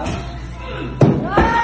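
An axe thuds into a wooden target.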